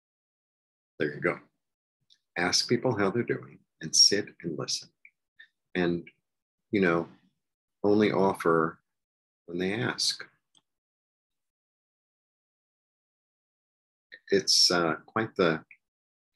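A middle-aged man talks calmly and close to a microphone, in short phrases with pauses.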